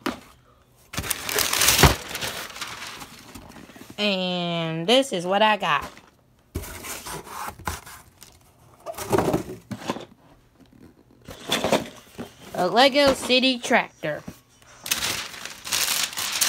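A cardboard box rustles and scrapes as it is handled close by.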